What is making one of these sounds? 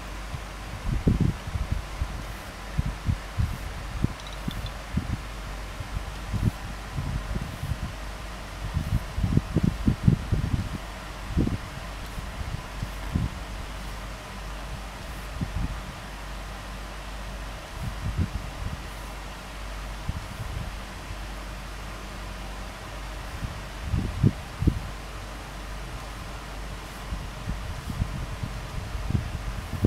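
Fingers tap and swipe on a touchscreen with soft, dull thumps.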